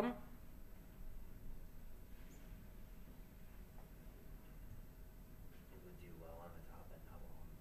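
A man speaks calmly and closely into a microphone, with pauses.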